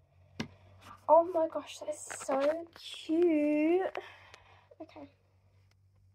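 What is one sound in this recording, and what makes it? A girl speaks close to a phone microphone with animation.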